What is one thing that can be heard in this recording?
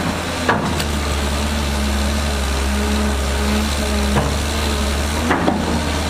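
A bulldozer's tracks clank and squeak as it moves.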